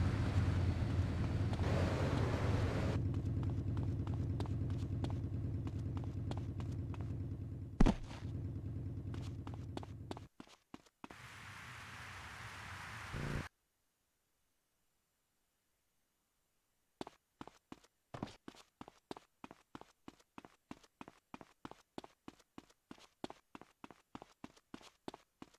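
Footsteps run on concrete.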